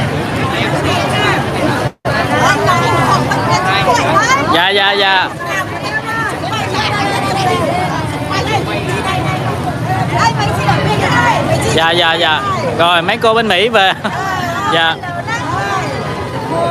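Middle-aged women laugh and cheer close by, with great excitement.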